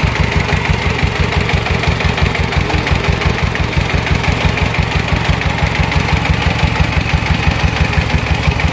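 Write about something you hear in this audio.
A small diesel engine chugs steadily close by.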